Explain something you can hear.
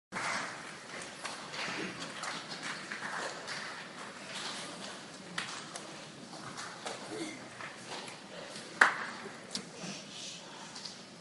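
An orchestra plays softly in a large echoing hall.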